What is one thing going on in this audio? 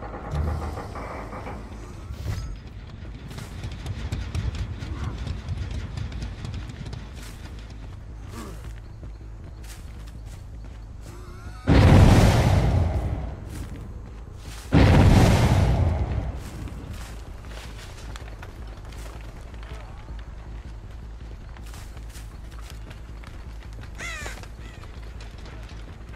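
Footsteps pad steadily through grass and dirt.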